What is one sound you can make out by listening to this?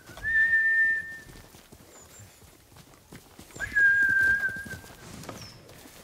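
Footsteps rustle through grass.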